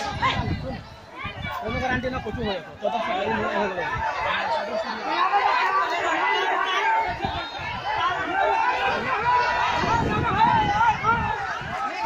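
A crowd of men shouts and yells excitedly close by, outdoors.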